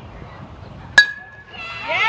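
A metal bat cracks sharply against a softball.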